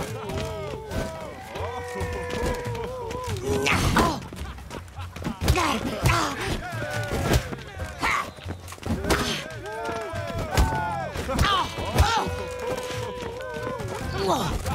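Fists thud against bodies in quick blows.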